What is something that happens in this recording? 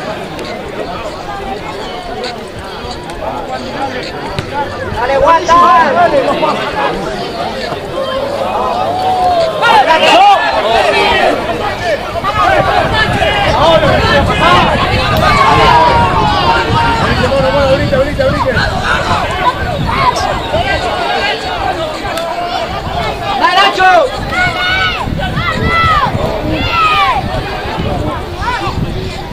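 Young men shout to each other outdoors on an open field.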